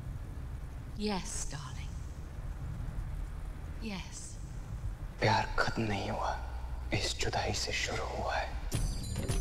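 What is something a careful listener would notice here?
An elderly woman speaks softly and gently nearby.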